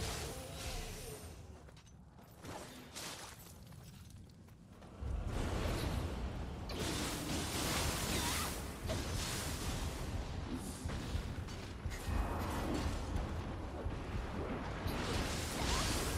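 Blades clash and slash repeatedly.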